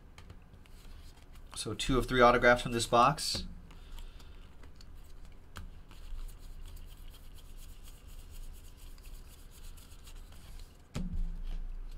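Trading cards shuffle and flick in a pair of hands.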